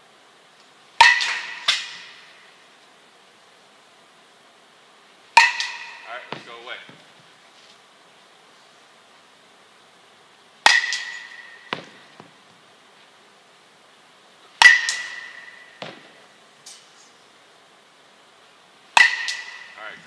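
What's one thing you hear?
A metal bat strikes a ball with a sharp, ringing crack in an echoing indoor space.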